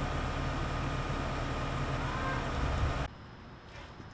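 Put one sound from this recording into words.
A fire engine's motor idles loudly close by.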